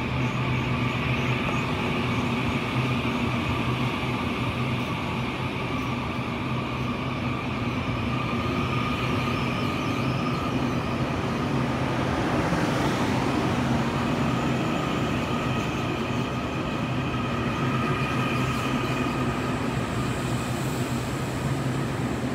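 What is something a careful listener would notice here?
A passenger train rumbles steadily past close by.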